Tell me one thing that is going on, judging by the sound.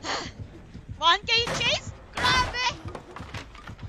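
A young woman shrieks loudly.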